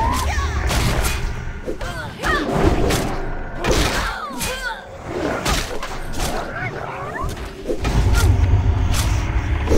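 Magic spells crackle and strike in a fight.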